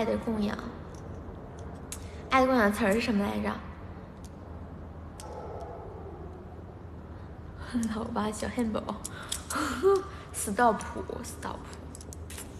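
A young woman speaks close to a microphone, chatting with animation.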